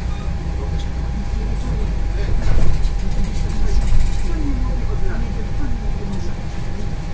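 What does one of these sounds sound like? A bus engine rumbles low and steadily while driving.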